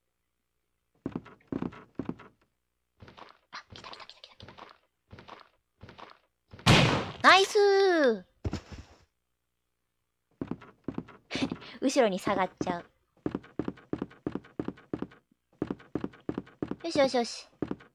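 Footsteps thud on a wooden floor at a steady pace.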